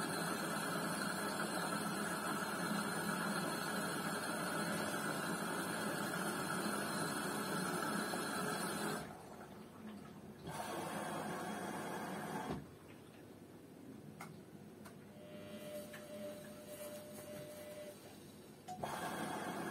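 A washing machine drum turns and sloshes laundry with a steady hum.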